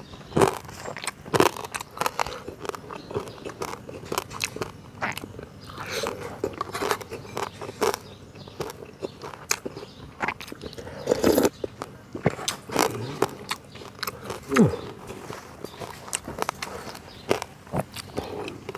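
A man chews and slurps food loudly close to a microphone.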